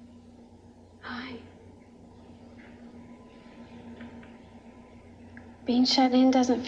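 A woman speaks softly and close by.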